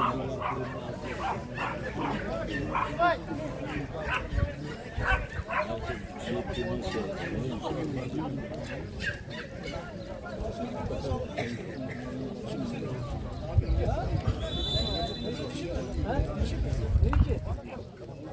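Young men shout and call to each other across an open outdoor pitch.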